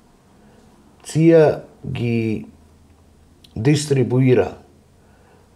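An elderly woman speaks calmly and closely into a microphone.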